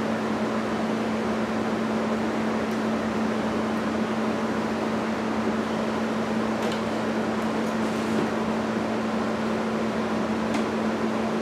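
A gas burner roars steadily with a low hum.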